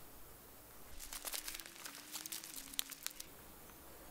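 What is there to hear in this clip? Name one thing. Dry leaves rustle and crunch as someone moves on the ground.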